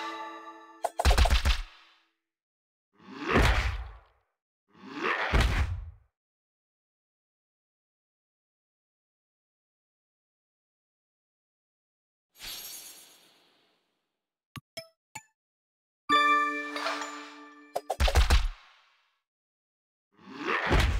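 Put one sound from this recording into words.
Game attack sounds whoosh and thud.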